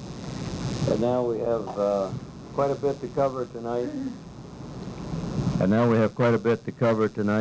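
An elderly man speaks calmly into a microphone, amplified through a loudspeaker in a room.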